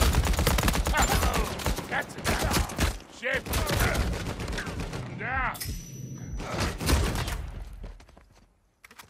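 A gun fires in loud, rapid bursts.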